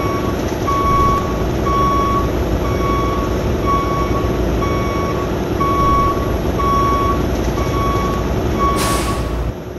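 A reversing alarm beeps at a steady, even pace.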